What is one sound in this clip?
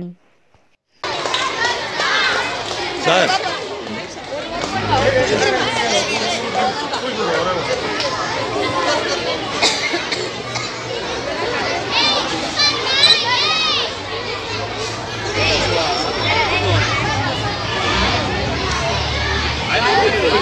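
A crowd of men and women chatter and cheer nearby.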